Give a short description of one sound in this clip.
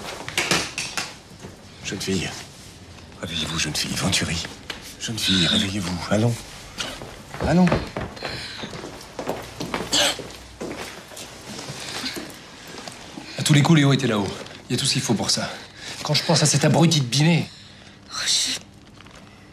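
An older man speaks up close.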